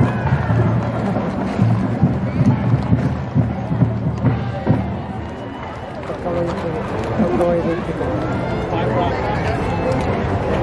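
Horses' hooves clop on pavement.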